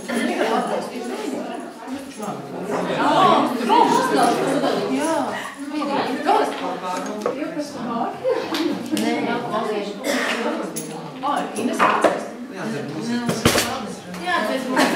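Several adults talk and chatter at once in a room with some echo.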